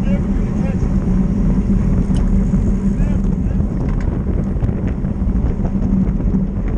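Wind rushes loudly past a moving bicycle rider.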